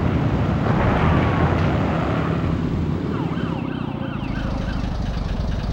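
A snowmobile engine drones steadily.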